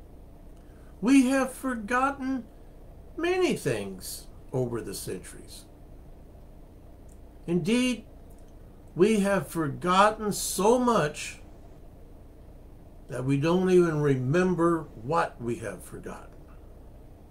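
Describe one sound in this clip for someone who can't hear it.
A middle-aged man speaks calmly and close up, in short bursts with pauses.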